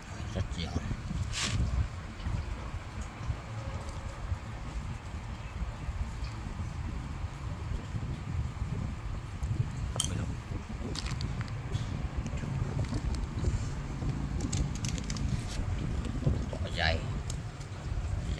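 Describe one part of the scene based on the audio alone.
Hands crumble dry soil and roots with a soft rustle.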